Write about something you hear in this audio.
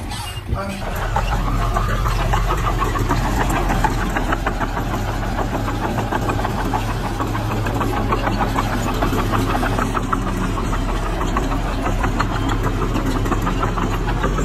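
A small bulldozer engine rumbles and clatters steadily.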